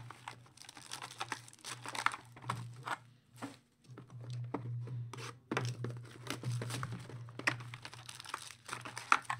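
Cardboard boxes slide and tap on a table.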